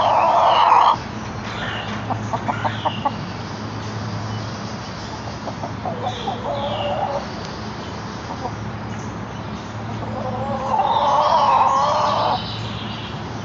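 Hens cluck and squawk loudly close by.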